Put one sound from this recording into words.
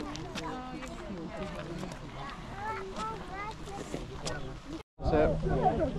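Women chat nearby.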